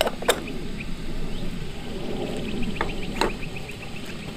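A metal kettle clinks against a metal stove.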